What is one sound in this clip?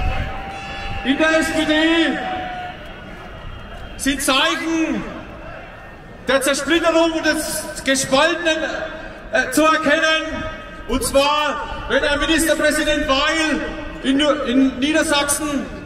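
A woman speaks forcefully through loud speakers, echoing across an open square.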